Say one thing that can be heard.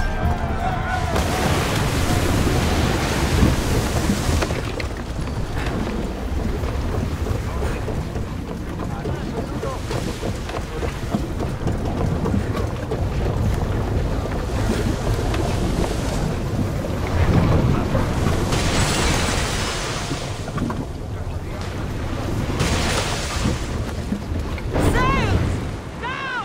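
Waves wash and splash against a ship's hull.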